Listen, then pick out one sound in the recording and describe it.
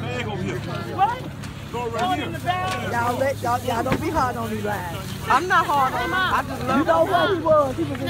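Women talk and laugh close by.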